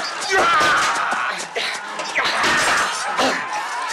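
A man shouts in pain close by.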